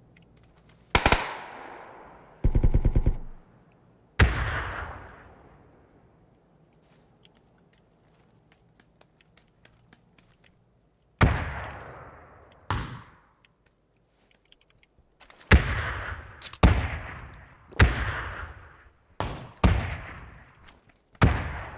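Single loud gunshots ring out one at a time, each with a long echo.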